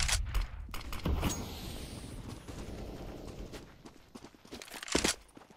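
A smoke grenade hisses as it spreads.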